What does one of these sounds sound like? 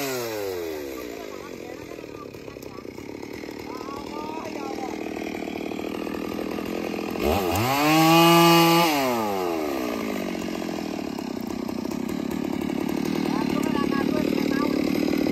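A chainsaw idles with a steady rattle.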